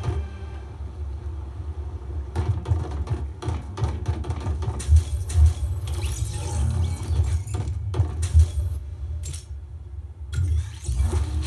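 Clicks and thuds of a video game play through a television speaker.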